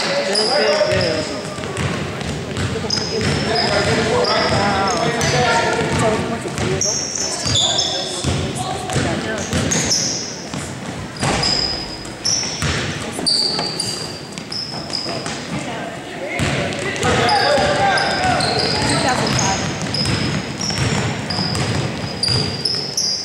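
Voices of a crowd and players echo in a large gym.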